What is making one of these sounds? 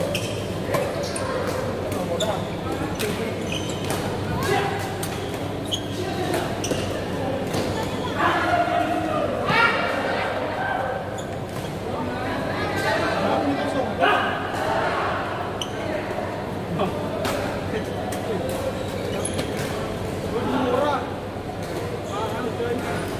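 Several young people call out and talk, echoing in a large hall.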